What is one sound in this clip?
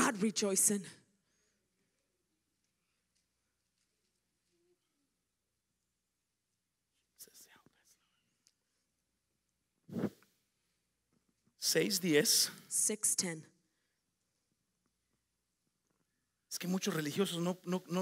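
A woman speaks into a microphone in short bursts, heard through a loudspeaker in a large room.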